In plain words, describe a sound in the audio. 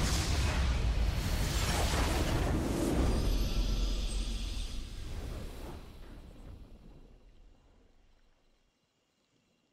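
A triumphant victory fanfare swells and then fades away.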